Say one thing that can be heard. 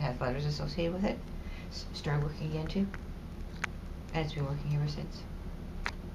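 A middle-aged woman speaks calmly and close by in short phrases.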